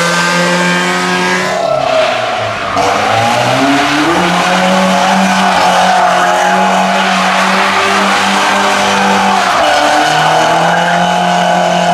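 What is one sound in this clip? Tyres squeal on tarmac as a car drifts.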